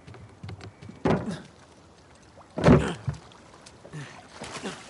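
A body lands heavily and scrambles against wood and stone.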